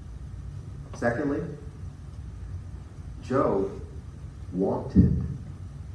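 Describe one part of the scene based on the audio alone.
A man speaks in short phrases to an audience in a room with a slight echo.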